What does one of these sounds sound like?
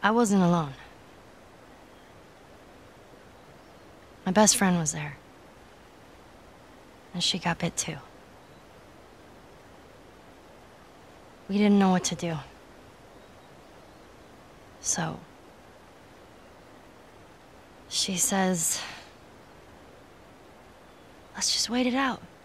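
A young girl speaks softly and hesitantly in short phrases, close by.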